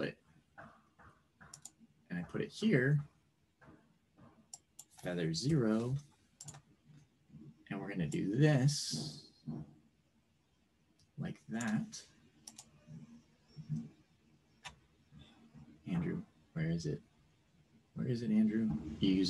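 A man talks calmly over an online call, in short bursts with pauses.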